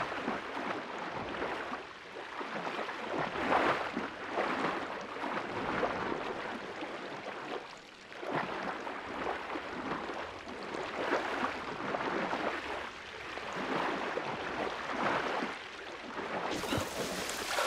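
Water swishes and bubbles in muffled bursts as a swimmer strokes underwater.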